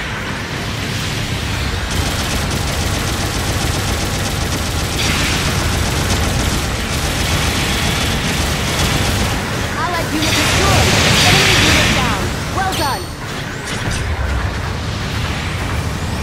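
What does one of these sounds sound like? Explosions burst with loud blasts.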